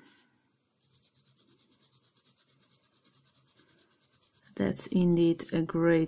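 A pencil scribbles back and forth on paper.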